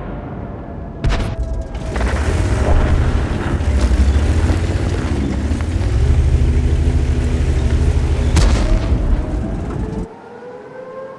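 A heavy tank engine rumbles and clanks as the tank drives.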